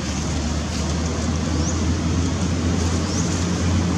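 Dry leaves rustle as a monkey moves on them.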